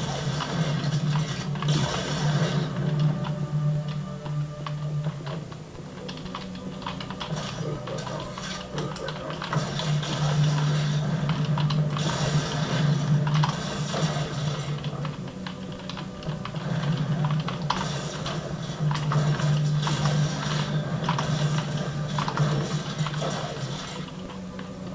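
A steady low hum drones through speakers.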